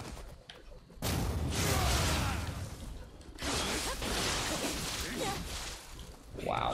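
Swords clash and strike in a fierce fight.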